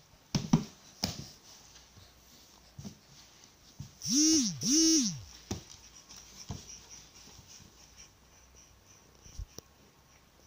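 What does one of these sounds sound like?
A baby's hand slaps the floor.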